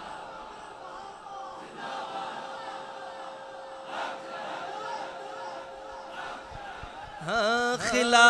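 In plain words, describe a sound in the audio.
A crowd of men murmurs in the background.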